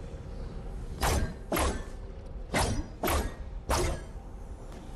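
Electric bolts crackle and zap in quick bursts.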